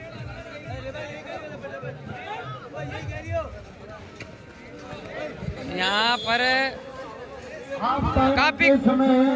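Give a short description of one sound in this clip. A crowd chatters and cheers loudly outdoors.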